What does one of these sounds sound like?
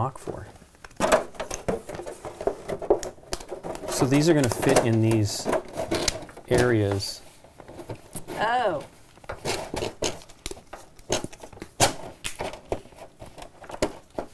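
Game pieces click and tap on a board.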